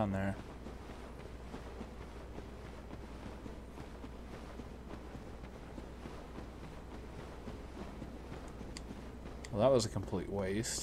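Armored footsteps run on stone.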